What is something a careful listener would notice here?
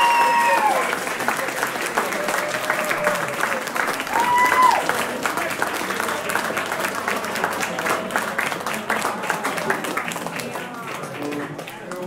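A rock band plays loudly with electric guitars and drums.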